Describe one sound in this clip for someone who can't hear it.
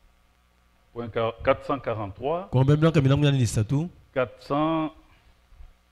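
An elderly man reads aloud slowly into a microphone in an echoing room.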